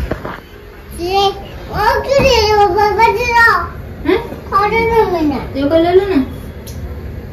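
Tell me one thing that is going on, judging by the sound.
A small child speaks in a high, excited voice close by.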